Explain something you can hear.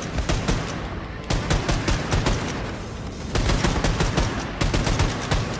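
A rapid-fire gun shoots in loud, quick bursts.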